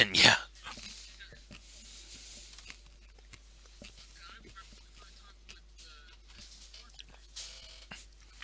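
Men talk quietly over an online call.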